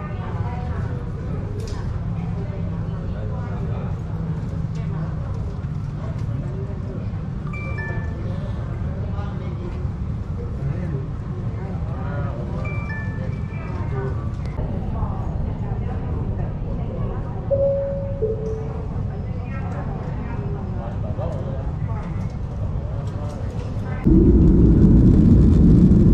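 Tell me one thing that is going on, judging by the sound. Jet engines rumble steadily, heard from inside an aircraft cabin.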